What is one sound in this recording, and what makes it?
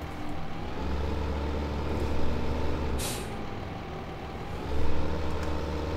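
A tractor engine rumbles steadily, rising and falling as it drives.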